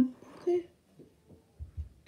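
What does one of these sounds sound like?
A finger taps on a touchscreen.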